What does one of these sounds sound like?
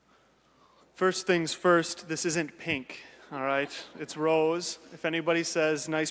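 A man speaks clearly through a microphone in a large echoing hall.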